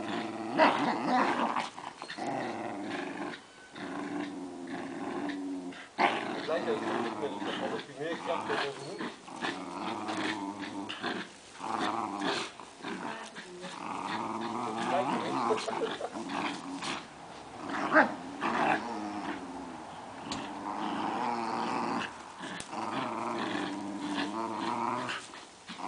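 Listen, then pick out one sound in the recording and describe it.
Two dogs growl and snarl close by.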